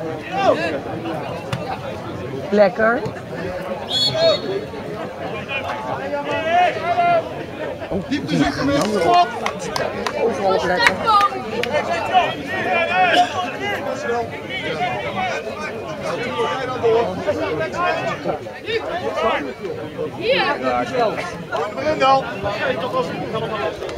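Several men talk with animation close by, outdoors.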